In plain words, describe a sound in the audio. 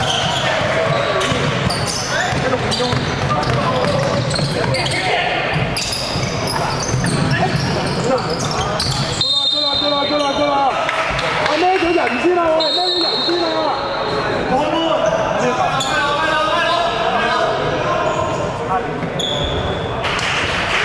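Players shout to each other across the echoing hall.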